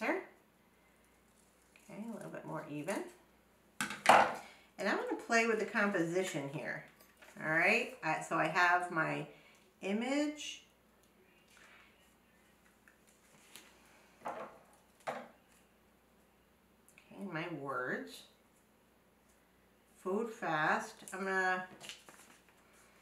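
A woman talks calmly and close by, as if explaining.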